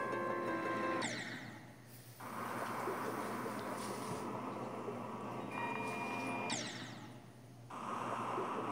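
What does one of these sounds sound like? A short burst sound plays as a game character crashes.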